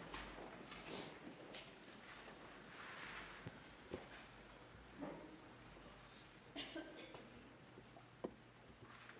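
An elderly man speaks quietly in a large echoing room.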